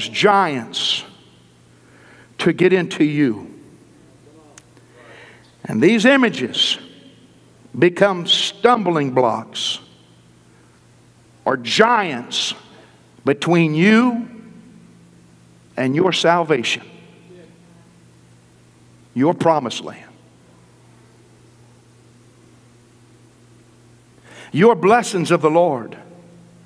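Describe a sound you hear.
A man preaches with animation through a microphone, in short bursts with pauses, in a large echoing hall.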